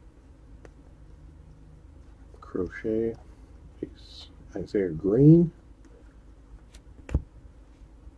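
Trading cards flick and slide between fingers.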